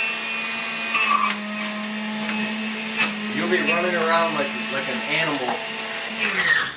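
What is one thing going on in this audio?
A juicer motor hums steadily.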